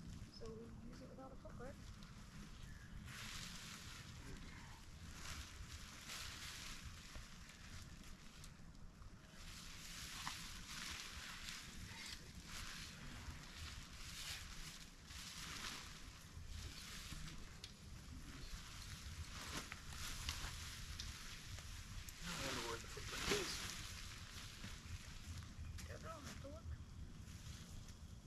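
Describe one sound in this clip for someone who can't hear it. Tent fabric rustles and swishes as it is handled.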